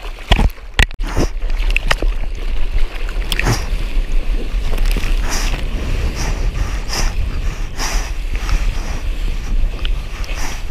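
A wave rushes and churns in white foam.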